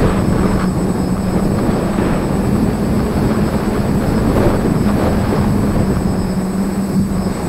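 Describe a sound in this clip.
Drone propellers whir with a steady high buzz close by.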